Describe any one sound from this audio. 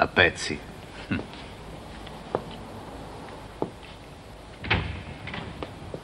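Footsteps climb stairs.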